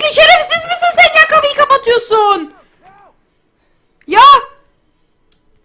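A young woman shouts excitedly close to a microphone.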